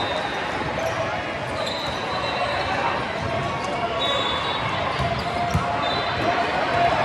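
A crowd chatters steadily in a large echoing hall.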